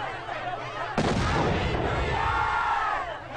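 A firework bursts with a loud bang.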